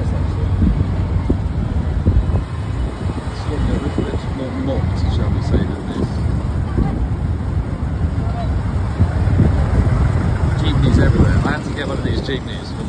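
An engine rumbles steadily as a vehicle drives along a street.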